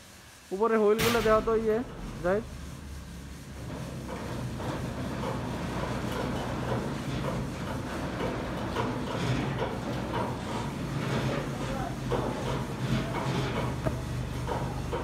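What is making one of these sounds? A motor hums steadily close by.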